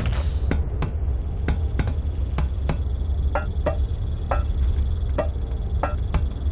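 Footsteps clang on metal grating.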